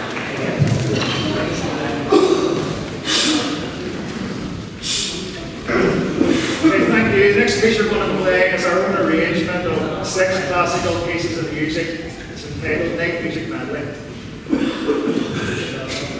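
A man speaks loudly and calmly to an audience.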